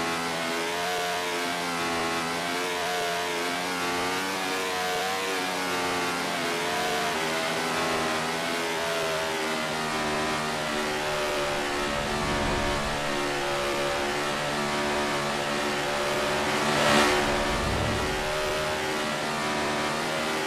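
A stock car engine drones at speed.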